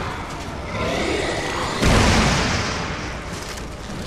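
A loud magical blast whooshes and roars.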